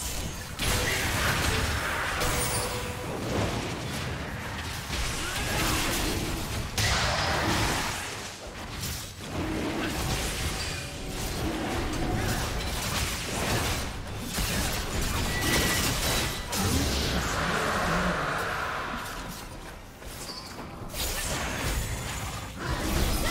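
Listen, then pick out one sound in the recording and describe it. Video game combat effects whoosh, crackle and blast in quick bursts.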